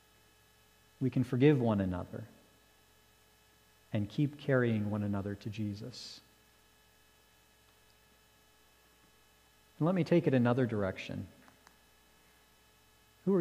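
A man speaks slowly and deliberately through a microphone, with long pauses.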